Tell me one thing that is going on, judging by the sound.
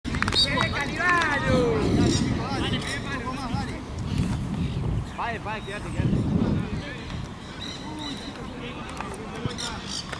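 Wind rumbles over the microphone outdoors.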